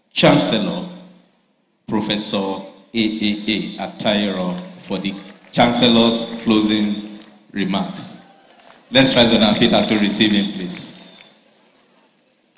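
A man speaks through a microphone over loudspeakers in a large echoing hall.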